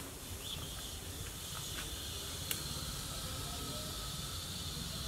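A wood fire crackles and rumbles softly.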